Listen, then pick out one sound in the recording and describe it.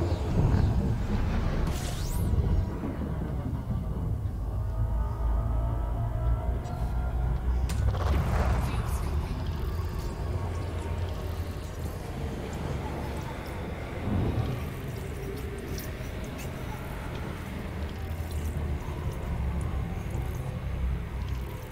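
A spaceship engine rumbles low and steadily.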